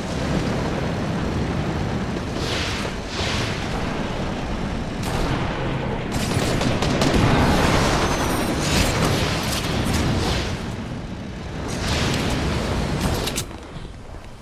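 A vehicle engine roars loudly and then cuts off.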